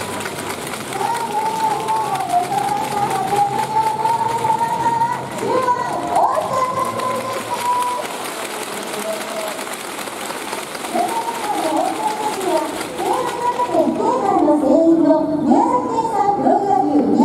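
A young man speaks into a microphone, heard through loudspeakers in a large echoing hall.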